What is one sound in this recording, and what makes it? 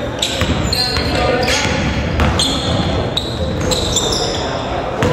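Players' footsteps patter across the court in a large echoing gym.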